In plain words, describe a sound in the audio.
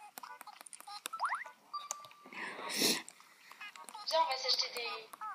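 A video game chirps with quick, high beeps as text pops up.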